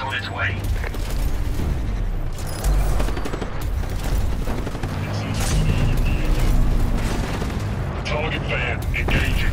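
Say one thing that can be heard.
A heavy mechanical robot stomps and whirs as it moves.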